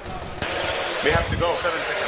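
A gun fires in a quick burst.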